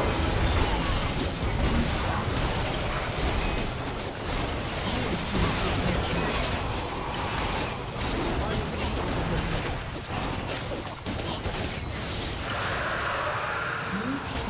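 Spell blasts and hits of a fantasy battle game crackle and boom in quick succession.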